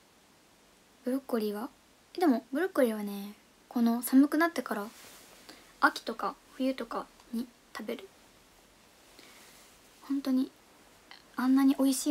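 A young woman talks animatedly, close to a microphone.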